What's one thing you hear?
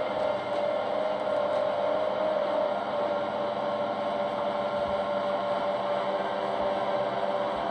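A machine hums steadily as a mixer stirs a tank of liquid.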